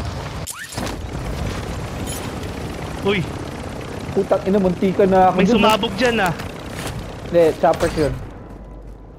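A helicopter's rotor thumps and roars close by.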